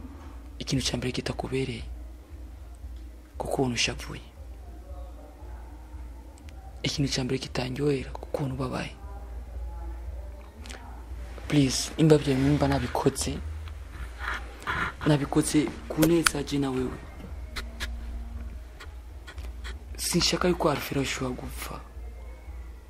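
A young man speaks calmly and close by.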